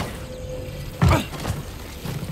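A heavy thud sounds as someone lands on a metal platform.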